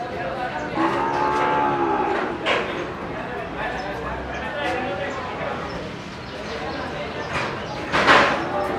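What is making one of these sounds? Cattle hooves shuffle and scrape on a concrete floor.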